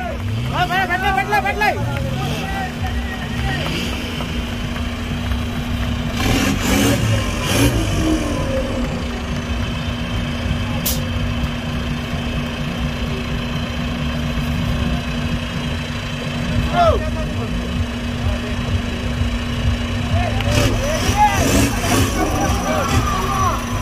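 An off-road vehicle's engine rumbles and revs as it crawls through mud.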